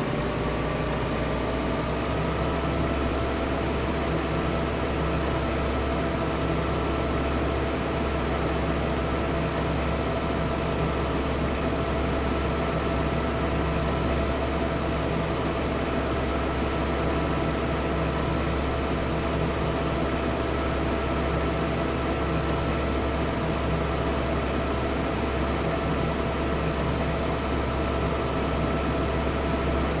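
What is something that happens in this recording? A combine harvester engine drones steadily, rising slightly in pitch at first.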